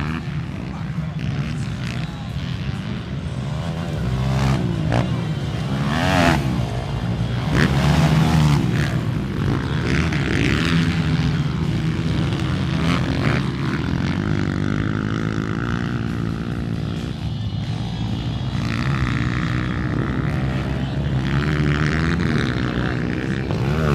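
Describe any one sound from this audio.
Motorcycle engines rev loudly, rising and falling in pitch.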